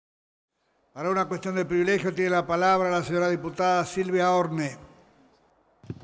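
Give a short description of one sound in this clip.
An elderly man speaks calmly into a microphone in a large echoing hall.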